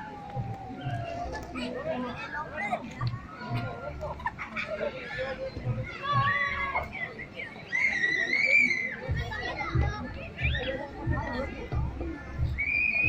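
Young boys chatter and shout excitedly nearby.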